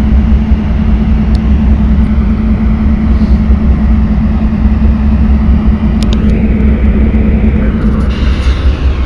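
A train engine hums steadily as the train approaches.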